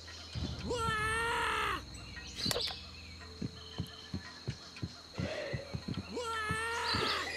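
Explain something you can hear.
Cartoonish game sound effects chime and pop.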